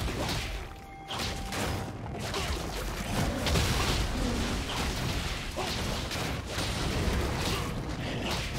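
Game figures clash with sharp hits and blasts.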